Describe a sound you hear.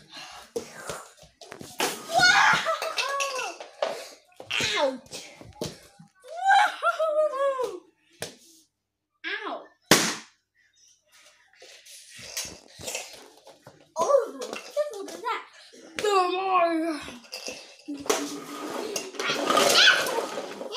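A young boy shouts and squeals excitedly nearby.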